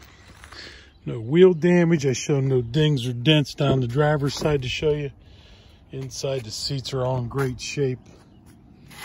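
A man speaks calmly, close to the microphone.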